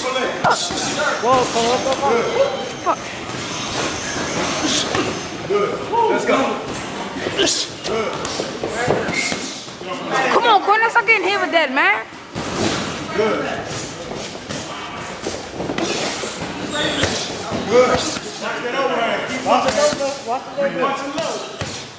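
Boxing gloves thud in quick punches.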